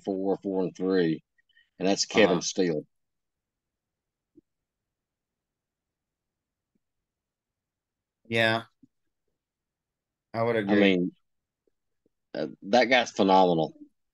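A middle-aged man talks casually through an online call, in short bursts with pauses.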